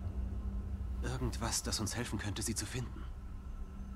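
A young woman speaks softly and tensely.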